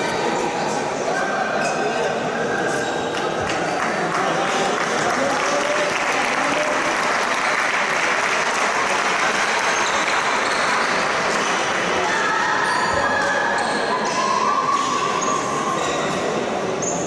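A crowd of spectators chatters in a large echoing sports hall.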